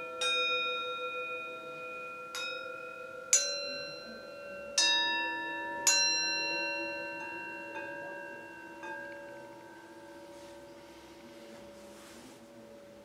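Metal singing bowls are struck one after another, each ringing out in a long, clear, slowly fading tone.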